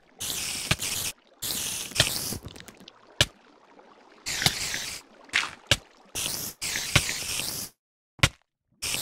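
Spiders hiss and chitter in short, repeated bursts.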